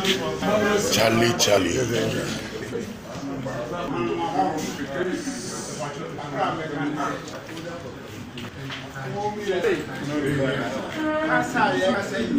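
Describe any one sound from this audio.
Several men talk over one another close by.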